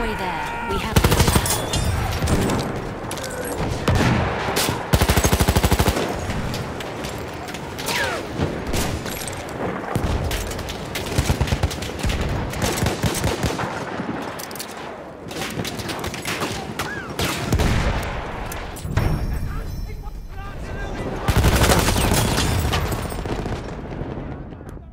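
Gunfire cracks in rapid bursts nearby.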